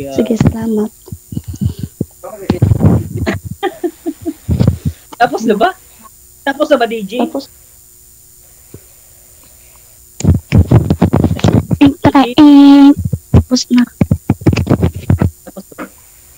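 A woman talks and laughs over an online call.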